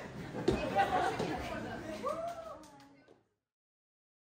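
Shoes shuffle and tap on a hard floor.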